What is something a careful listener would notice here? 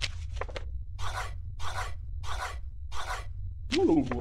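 A pencil scratches quick marks on paper.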